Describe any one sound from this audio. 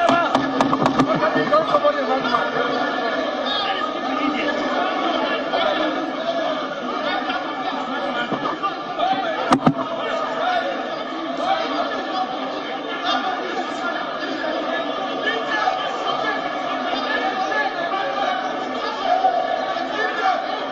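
A crowd of men shout and argue loudly in a large echoing hall.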